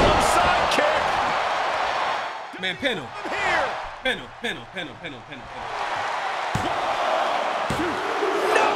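A large crowd roars and cheers.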